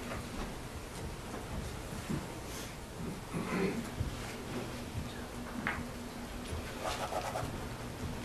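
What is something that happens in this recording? Footsteps shuffle on the floor as a woman walks past seated people.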